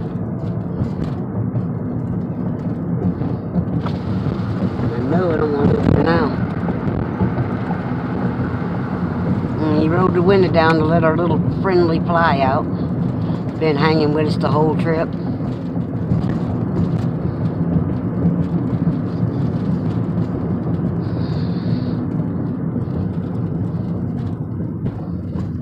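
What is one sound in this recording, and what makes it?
A car's road noise hums steadily from inside the car.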